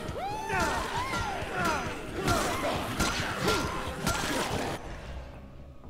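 Heavy blows thud and smack against bodies.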